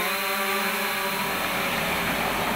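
A drone's rotors whir and buzz overhead.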